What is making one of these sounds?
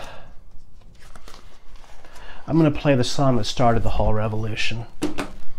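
A cardboard record sleeve rustles and scrapes as it is handled.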